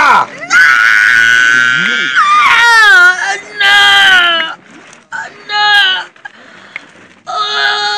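A young woman wails and cries loudly up close.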